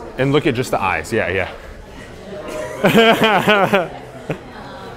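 A young man laughs loudly nearby.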